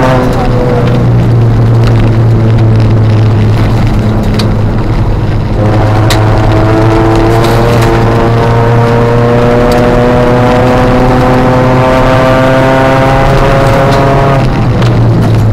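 A car engine revs loudly from inside the car, rising in pitch as it speeds up.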